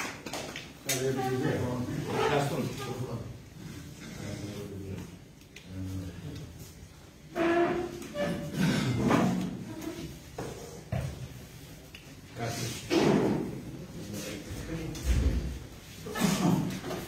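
Several older men talk among themselves.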